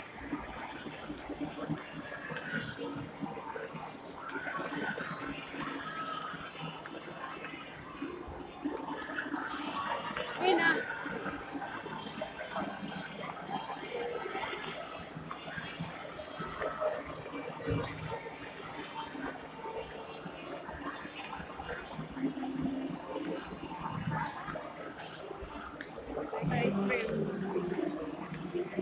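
A young woman talks in a chatty way close to a phone's microphone.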